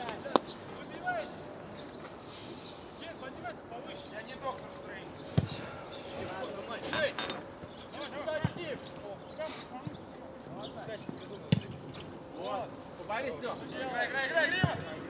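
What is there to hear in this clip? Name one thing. Young men shout and call to each other across an open pitch.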